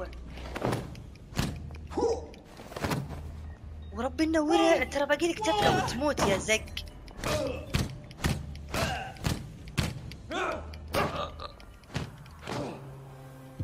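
Heavy blows thud as a man is struck.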